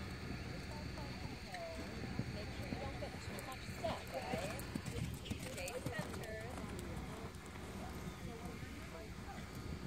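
A horse canters, its hooves thudding on soft sand.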